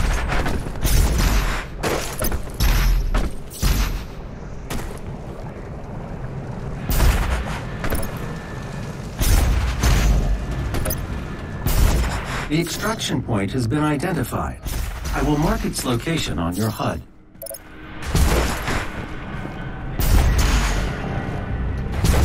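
Heavy thuds land again and again as a game figure jumps across rocks.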